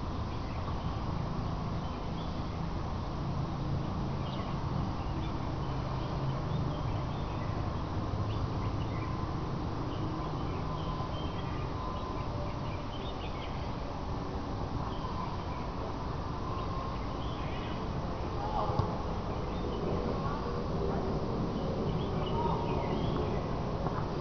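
Distant players shout across an open field.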